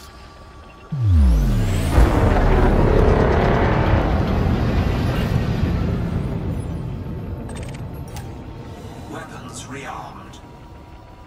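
A spaceship's engines roar up suddenly, then slowly fade away.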